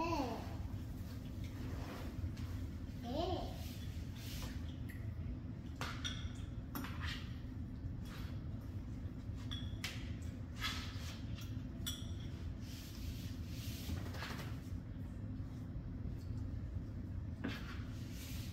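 Cutlery clinks and scrapes against plates.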